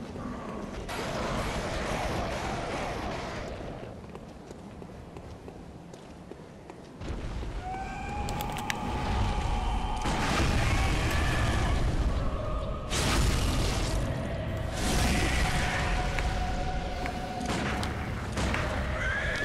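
A young woman talks into a microphone.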